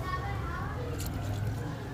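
Water pours from a cup into a pot of water and splashes.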